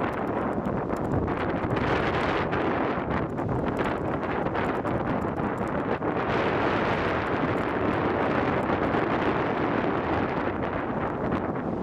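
Waves break and wash onto a beach nearby.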